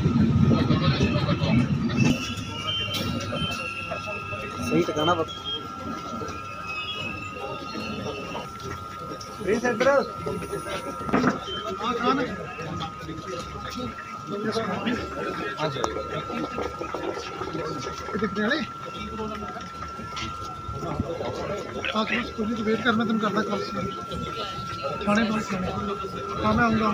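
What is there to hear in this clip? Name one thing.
A crowd of men and women chatter and talk over one another outdoors.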